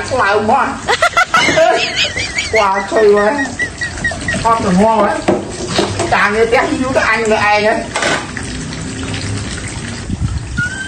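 Dishes clatter in a sink.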